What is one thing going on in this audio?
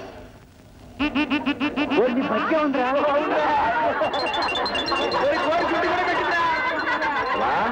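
A crowd of men and women laugh loudly together, close by.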